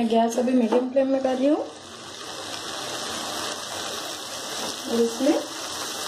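A wooden spatula scrapes and stirs food in a metal pan.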